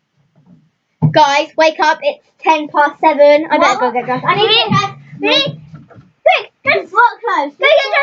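Young girls sing loudly and excitedly close by.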